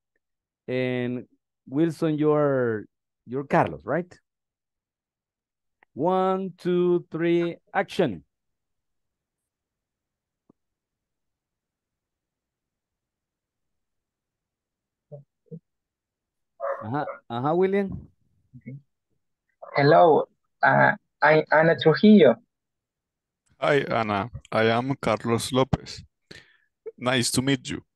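An adult man speaks calmly over an online call.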